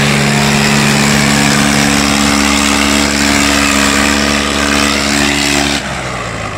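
A tractor engine chugs loudly nearby.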